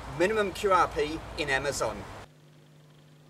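A man speaks with animation outdoors.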